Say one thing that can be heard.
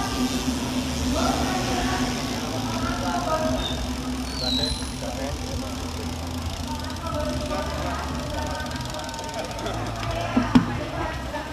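A motorbike engine hums nearby.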